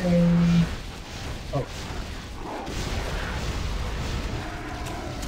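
Game spells and blows clash in bursts.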